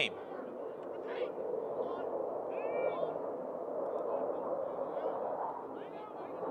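A distant crowd murmurs and cheers outdoors.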